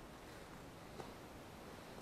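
A bird's limp wings flap as a body is lifted and turned.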